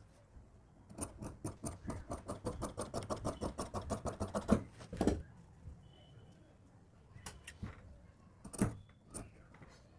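Scissors snip steadily through paper and cloth.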